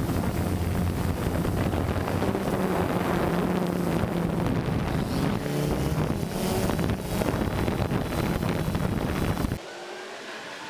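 A drone's propellers buzz loudly and steadily.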